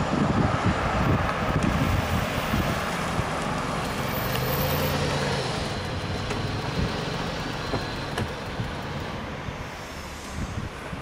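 A car drives up on a wet road and stops nearby.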